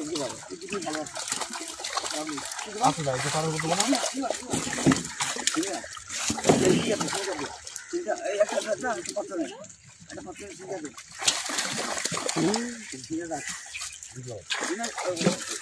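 Water splashes as men haul a net through shallow water.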